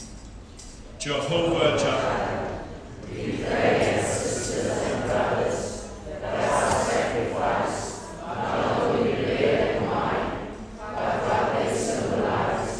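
A man speaks slowly through a microphone in a large echoing hall.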